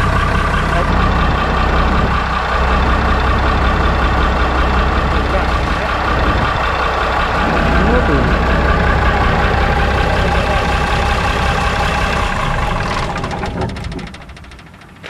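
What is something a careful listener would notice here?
A diesel engine runs loudly with a steady rumble, then shuts off.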